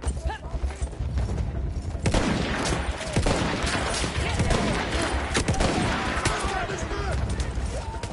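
A horse gallops with thudding hooves.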